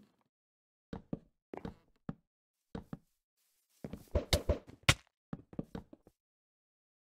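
Wooden blocks are placed with quick, short knocks.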